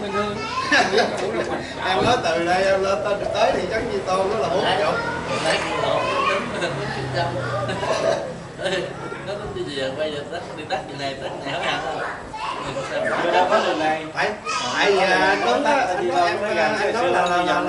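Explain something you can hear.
Several men talk and laugh loudly together.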